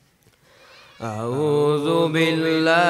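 A young girl recites in a loud, melodic chant through a microphone.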